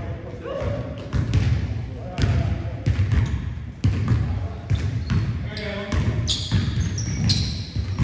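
A basketball bounces on a hard court floor in a large echoing hall.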